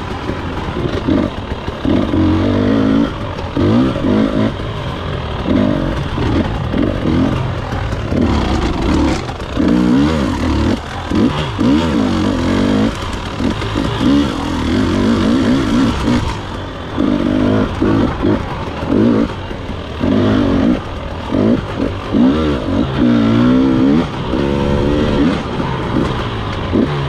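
Tyres crunch over a rough dirt trail.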